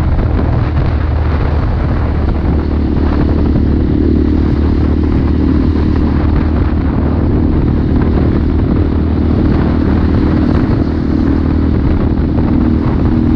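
Wind rushes past loudly while riding.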